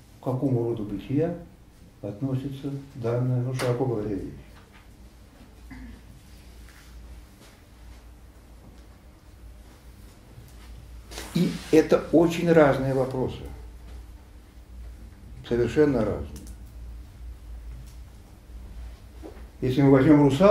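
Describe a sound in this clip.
An elderly man speaks with animation, pausing now and then.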